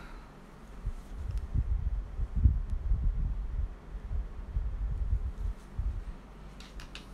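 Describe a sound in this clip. A paintbrush dabs and brushes softly on paper.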